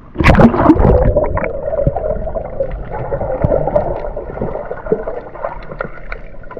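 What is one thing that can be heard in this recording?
A metal detector hums with a steady electronic tone underwater.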